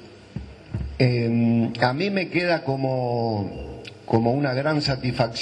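An elderly man speaks into a microphone, heard through loudspeakers.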